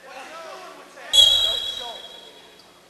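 Shoes squeak sharply on a wrestling mat.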